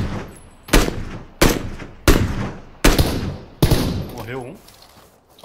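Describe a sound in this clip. Rifle shots fire one after another, each echoing loudly and fading.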